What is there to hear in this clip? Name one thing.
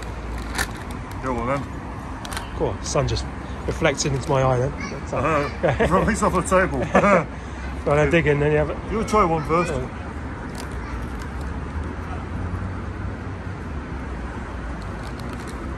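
A crisp packet crinkles in a hand.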